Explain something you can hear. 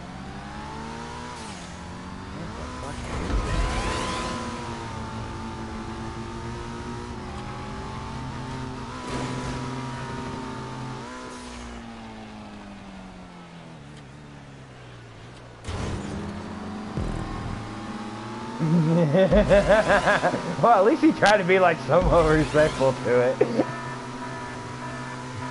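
A car engine roars steadily, its pitch rising and falling as it speeds along.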